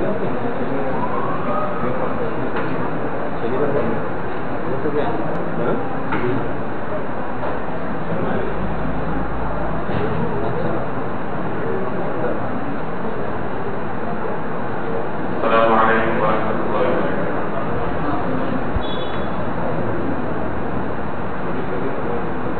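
A man speaks steadily through a microphone.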